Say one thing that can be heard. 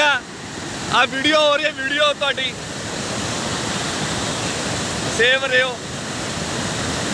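Floodwater rushes and roars loudly.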